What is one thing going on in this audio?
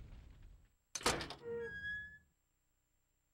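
A metal gate creaks open.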